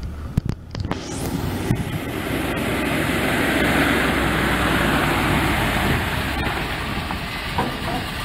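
Truck tyres crunch over gravel.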